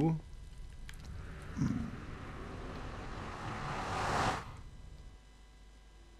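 A low, wavering whoosh swells steadily and then cuts off.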